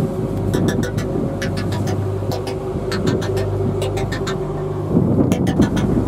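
A ship's engine hums steadily with a deep drone.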